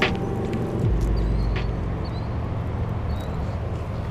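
A fishing reel clicks as its line winds in.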